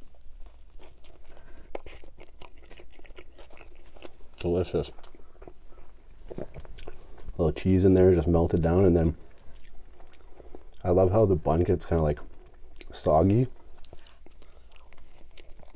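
A man bites into a soft bun and chews wetly.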